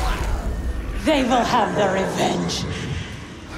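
A woman speaks in a low, menacing voice.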